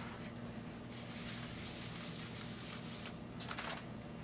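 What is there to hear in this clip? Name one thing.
A board eraser rubs across a whiteboard.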